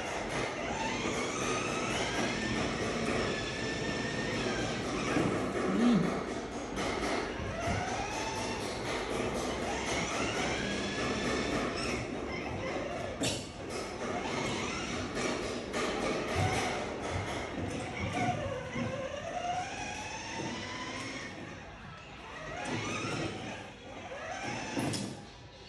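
Young children talk and call out at a distance in an echoing hallway.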